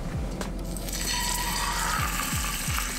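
A fish sizzles loudly as it lands in hot oil.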